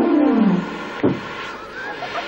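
A small explosion pops.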